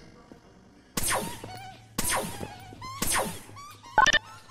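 A laser gun fires zapping shots with a falling whine, about once a second.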